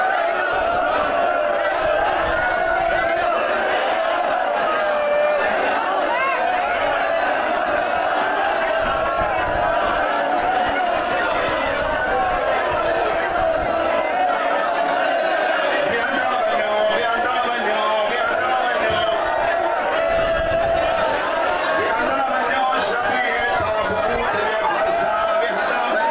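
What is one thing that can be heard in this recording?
Many hands beat rhythmically on chests.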